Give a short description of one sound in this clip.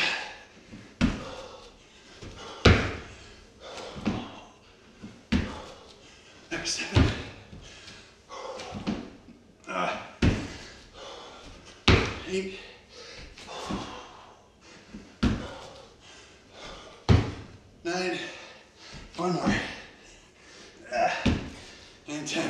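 Feet thump on a wooden floor again and again.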